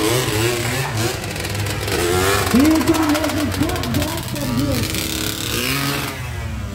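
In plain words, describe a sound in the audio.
A small quad bike engine revs loudly and whines.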